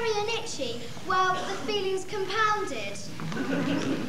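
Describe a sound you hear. A young girl sings loudly on a stage.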